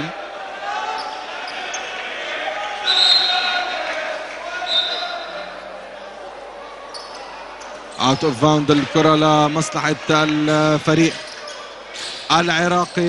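A large crowd murmurs in an echoing indoor arena.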